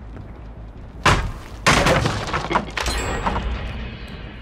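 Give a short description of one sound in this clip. Wooden boards crash and splinter as they are smashed.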